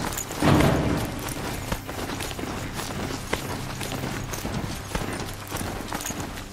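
A mechanical beast's feet thud and clatter as it gallops over grass and dirt.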